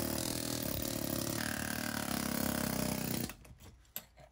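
A hammer drill rattles loudly against concrete.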